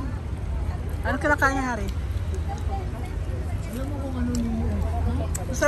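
A young girl speaks with excitement close by.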